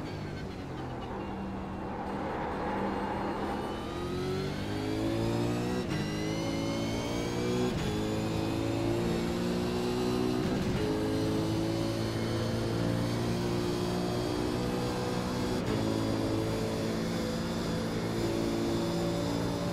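A racing car engine roars and revs up through the gears, with its pitch dropping at each shift.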